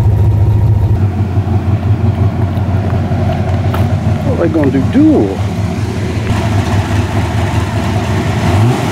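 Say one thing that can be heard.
A pickup truck engine rumbles as it drives past.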